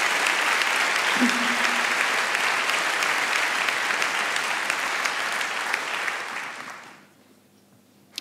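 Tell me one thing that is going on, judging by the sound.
A large crowd applauds in an echoing hall and then fades.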